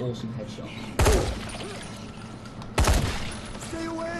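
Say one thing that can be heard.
Gunshots fire in loud single bangs.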